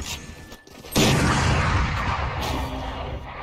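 A magical energy orb crackles and whooshes.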